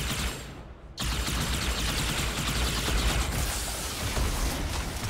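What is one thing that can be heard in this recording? An energy sword swings and slashes with a crackling hiss.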